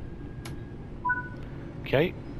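A door warning chime beeps twice.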